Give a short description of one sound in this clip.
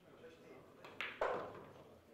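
A cue strikes a billiard ball with a sharp knock.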